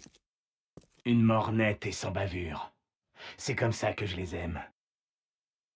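A man speaks calmly and coolly, close up.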